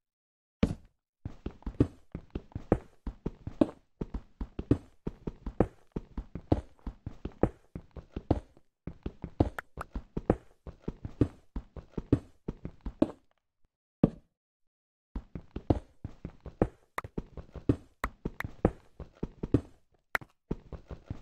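Quick footsteps crunch on stone and gravel.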